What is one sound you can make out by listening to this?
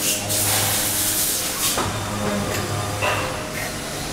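Compressed air hisses in short bursts.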